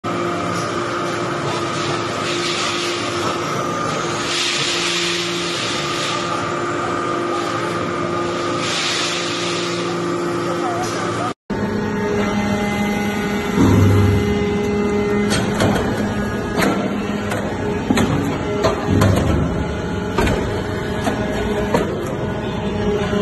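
A large machine hums and whirs steadily in a hall.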